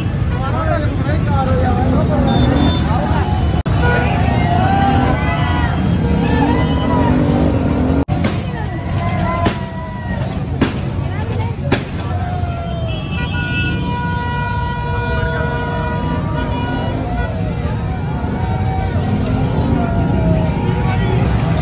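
A large crowd of men shouts and cheers loudly outdoors.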